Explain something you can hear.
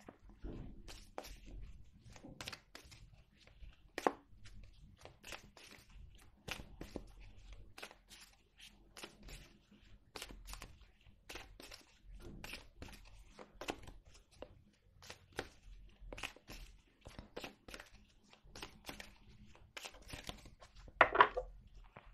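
Playing cards are shuffled by hand, riffling and slapping together.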